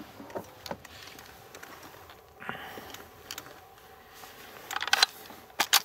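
Metal parts of a rifle click and clack as it is handled.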